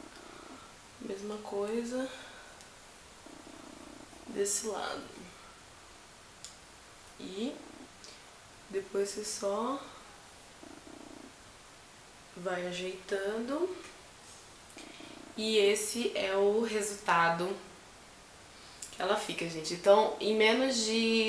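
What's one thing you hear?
A young woman talks calmly and close to a microphone, in short phrases with pauses.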